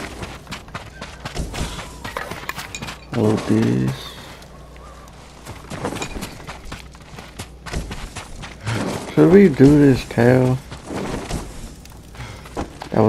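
Footsteps patter quickly, running.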